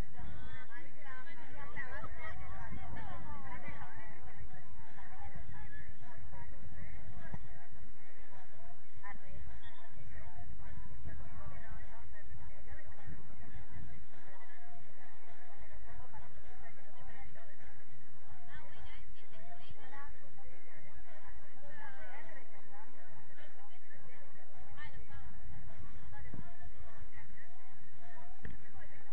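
Young women talk and call out nearby outdoors.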